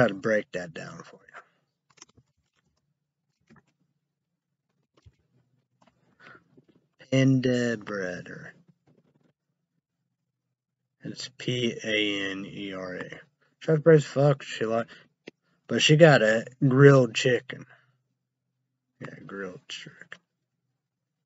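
A young man speaks calmly and close up, in short bursts with pauses.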